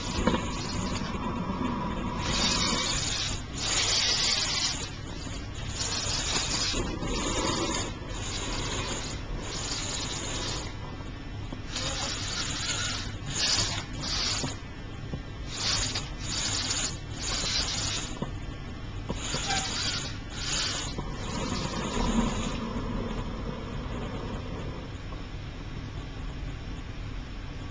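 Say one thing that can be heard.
The servo motors of a small humanoid robot whir as its limbs move.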